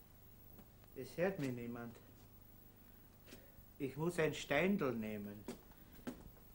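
A middle-aged man speaks in short, emphatic phrases close by.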